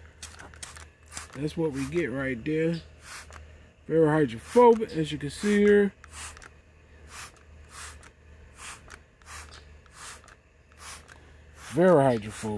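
A spray bottle squirts water in quick, repeated bursts.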